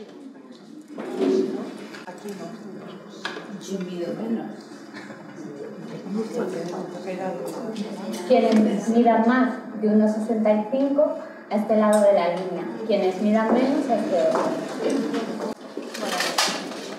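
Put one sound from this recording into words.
A woman speaks calmly to a small group in a room.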